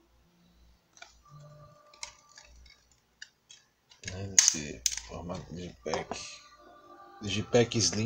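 A plastic disc case clicks and rattles as hands handle it.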